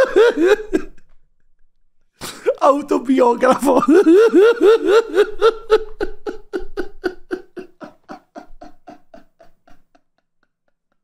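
A young man laughs loudly and hysterically into a microphone, the laughter slowly dying away.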